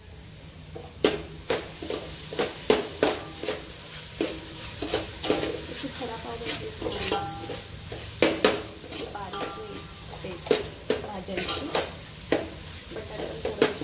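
A metal spoon scrapes and clanks against a cooking pot as food is stirred.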